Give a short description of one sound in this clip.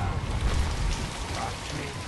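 A man shouts in distress.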